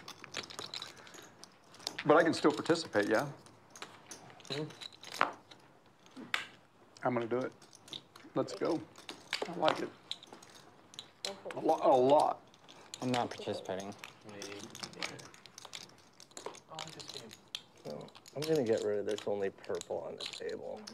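Poker chips click and clatter together.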